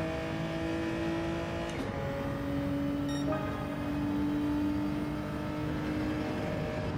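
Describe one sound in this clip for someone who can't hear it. A racing car engine roars at high revs, dropping in pitch briefly as the gears shift.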